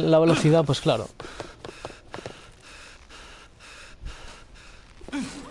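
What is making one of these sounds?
Hard shoes walk with steady footsteps.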